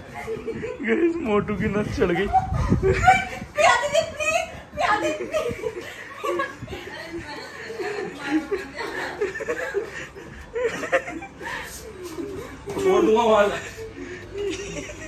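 A young woman laughs and shouts playfully close by.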